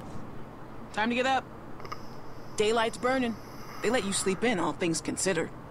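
A young man talks calmly, close to a microphone.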